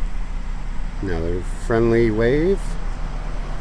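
A man speaks briefly nearby, with a drawn-out, rising tone.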